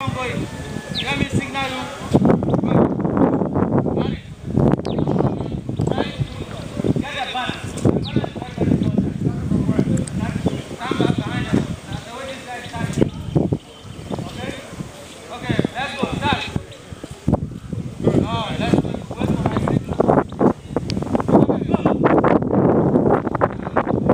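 Young men talk outdoors.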